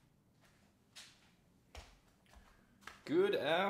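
Footsteps approach across a hard floor.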